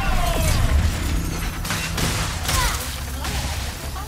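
Wooden crates smash apart and debris clatters.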